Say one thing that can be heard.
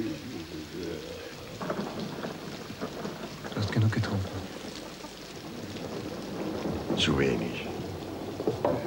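An older man speaks in a low, serious voice close by.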